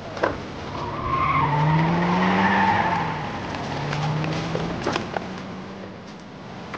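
A car engine revs as the car pulls away.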